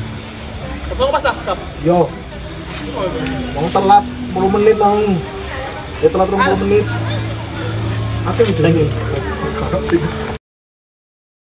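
Young men call out to each other across an outdoor pitch.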